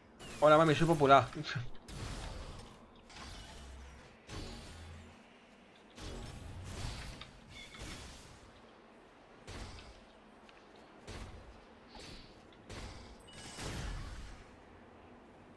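Sword blows strike and clang in short bursts.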